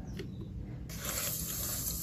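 Water pours into a metal pot.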